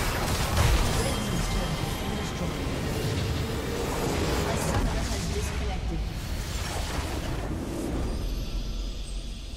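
Loud game spell blasts and explosions crash rapidly.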